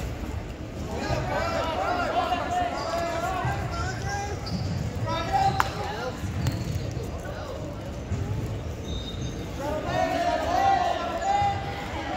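Spectators shout encouragement in a large echoing gym.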